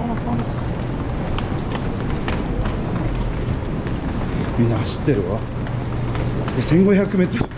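Footsteps tap on stone stairs.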